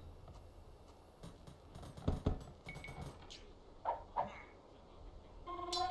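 Short game sound effects click and chime.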